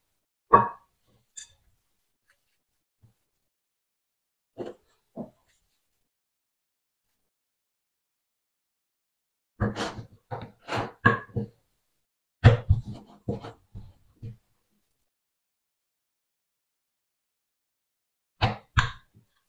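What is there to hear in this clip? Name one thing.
Hands pat and press soft dough.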